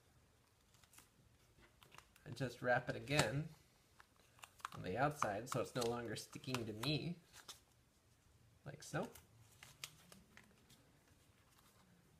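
Stiff leather rustles and taps as hands handle it.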